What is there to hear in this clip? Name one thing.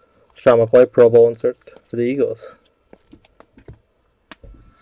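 A plastic card wrapper crinkles as hands handle it.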